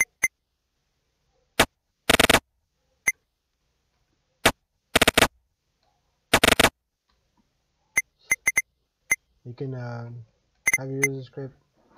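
Short, sharp game sound effects chime and thud now and then.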